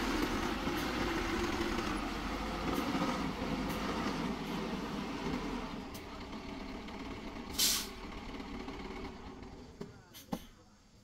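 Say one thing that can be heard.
A truck engine rumbles as the truck reverses slowly.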